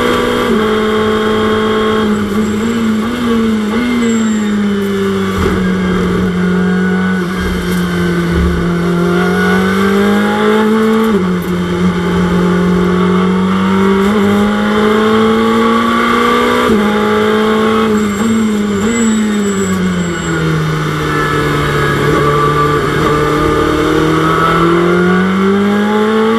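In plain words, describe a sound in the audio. A racing car engine roars, its pitch climbing and dropping sharply with each gear change.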